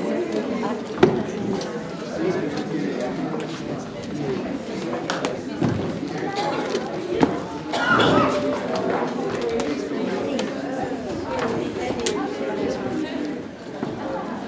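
Chairs scrape and knock on a wooden floor.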